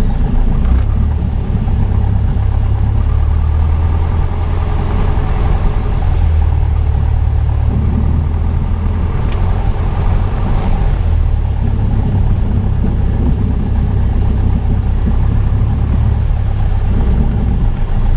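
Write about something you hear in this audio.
Wind rushes against the plane as it speeds along the runway.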